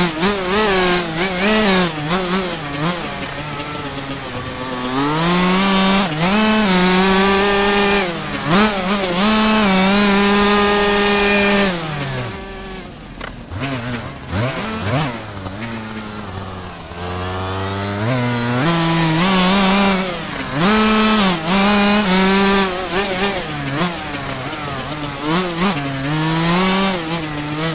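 A dirt bike engine revs up and down, rising and falling as gears shift.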